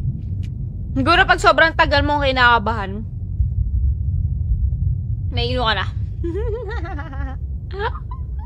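A young woman speaks animatedly close to a microphone.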